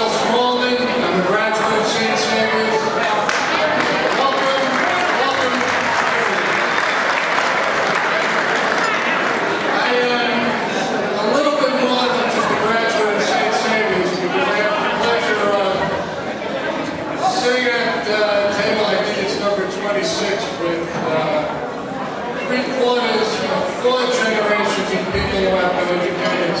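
A man speaks steadily into a microphone, heard through loudspeakers in a large echoing hall.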